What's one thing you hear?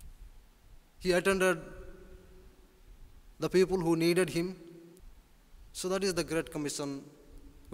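A man speaks calmly through a microphone in short phrases with pauses.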